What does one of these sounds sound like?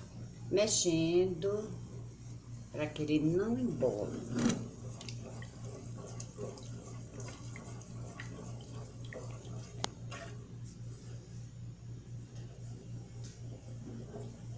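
Thick liquid bubbles and simmers in a pot.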